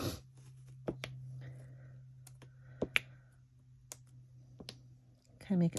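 A small tool taps and clicks against card stock.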